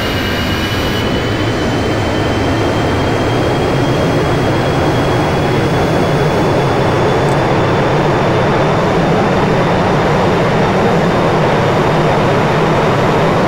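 A jet airliner's engines roar and whine steadily as the plane rolls slowly along the runway.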